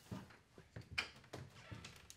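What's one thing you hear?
A door handle clicks as a door opens.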